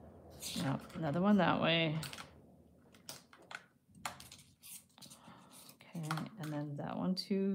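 Thin metal wire clicks and scrapes as it is bent by hand.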